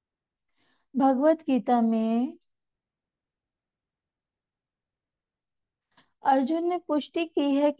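A woman recites slowly in a sing-song voice, heard through a microphone.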